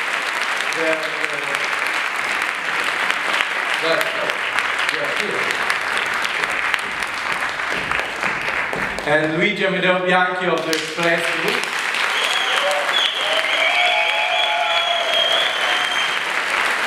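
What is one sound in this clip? A man speaks into a microphone, heard through loudspeakers in a large echoing hall.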